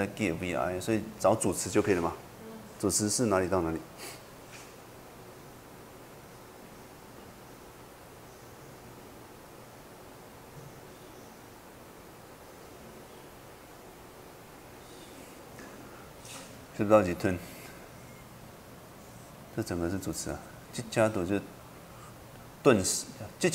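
A man speaks calmly through a microphone, in short bursts with long pauses.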